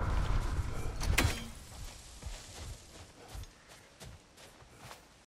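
Heavy footsteps thud on soft ground outdoors.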